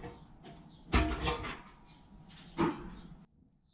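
A heavy metal part knocks against a metal stand.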